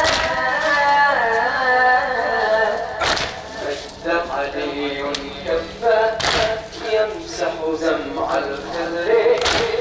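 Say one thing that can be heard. A crowd of men chants in unison.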